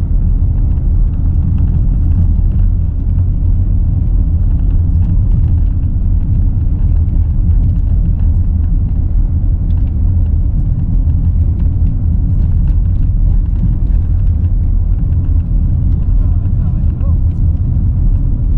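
Tyres roll on smooth asphalt.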